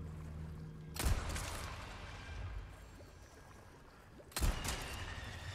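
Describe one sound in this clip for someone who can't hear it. A pistol fires sharp shots that echo.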